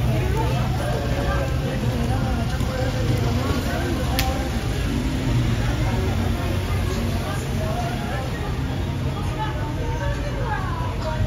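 Traffic rumbles steadily along the street.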